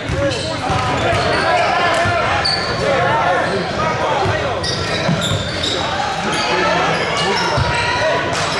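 Many voices of a crowd chatter throughout a large echoing gym.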